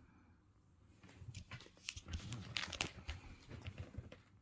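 Plastic card sleeves crinkle and rustle as fingers handle them.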